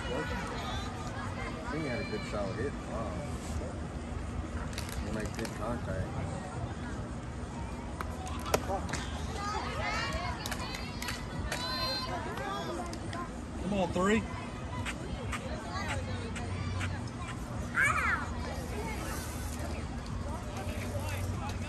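Young women call out and cheer across an open field.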